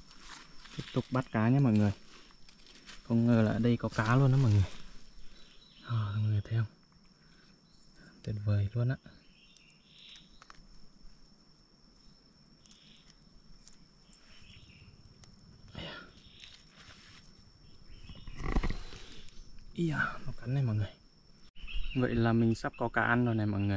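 A young man talks calmly close by, in short bursts.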